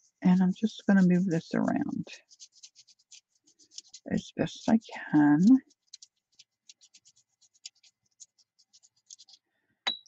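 A paintbrush scrapes softly across crinkled foil.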